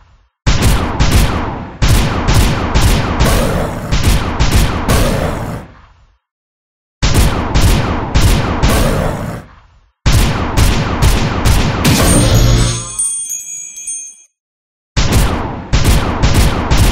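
Game music plays in loud bursts with a thumping beat.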